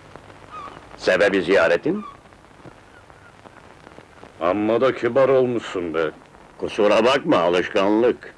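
An elderly man speaks in a calm, close voice.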